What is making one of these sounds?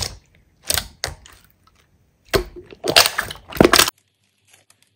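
Thick slime squelches and pops under pressing hands.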